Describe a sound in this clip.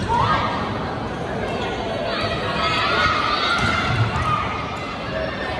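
A volleyball is struck with a smack.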